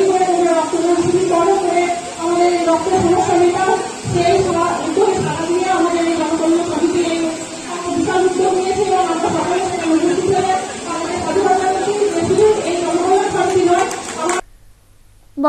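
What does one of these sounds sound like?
A young woman speaks loudly and with animation through a microphone and loudspeakers.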